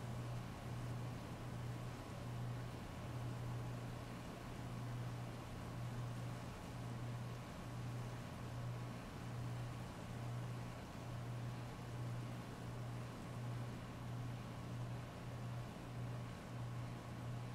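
Heavy rain pours steadily onto a wet street.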